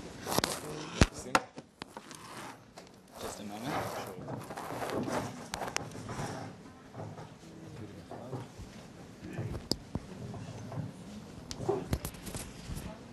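Small objects click and knock as hands handle them.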